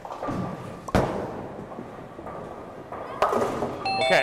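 A bowling ball thuds onto a lane and rolls.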